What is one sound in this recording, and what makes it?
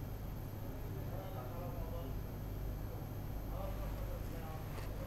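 A man speaks faintly over an online call.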